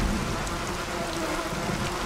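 Thunder rumbles.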